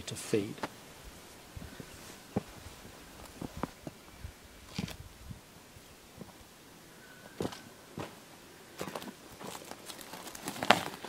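Boots scrape and thud on rock.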